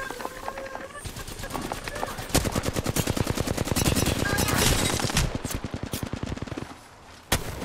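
A rapid-fire gun fires in quick bursts.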